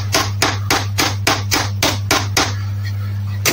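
A ratchet wrench clicks rapidly as it turns a bolt.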